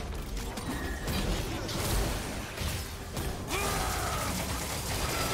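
Magic spells whoosh and burst in quick succession.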